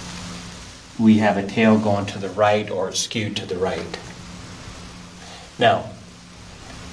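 A middle-aged man speaks clearly and calmly nearby in a room with a slight echo.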